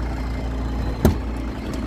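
A car door handle clicks as it is pulled.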